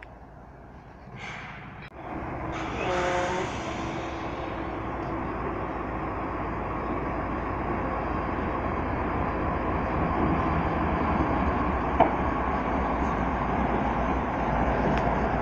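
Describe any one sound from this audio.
A diesel locomotive rumbles closer and passes by loudly.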